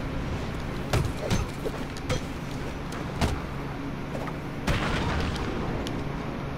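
Heavy blows thud as a fight breaks out.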